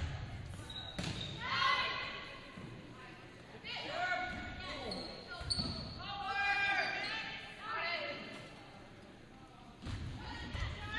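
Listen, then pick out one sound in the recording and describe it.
A volleyball is struck with a sharp smack in an echoing gym.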